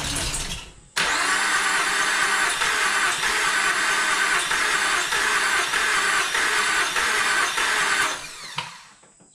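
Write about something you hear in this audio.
A car engine runs loudly.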